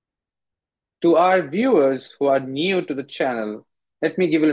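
A man speaks calmly into a microphone, heard as if through an online call.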